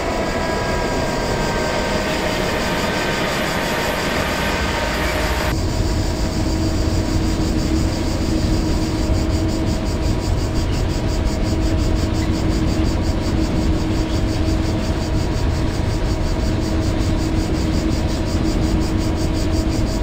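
Wheels click rhythmically over rail joints.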